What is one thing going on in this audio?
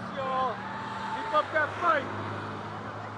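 An emergency vehicle's horn sounds as it drives past.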